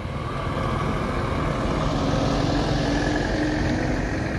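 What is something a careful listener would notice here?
A heavy truck engine rumbles close by.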